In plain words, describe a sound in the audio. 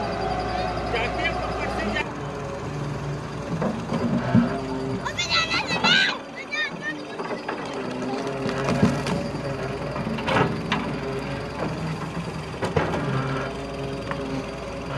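An excavator engine rumbles steadily nearby.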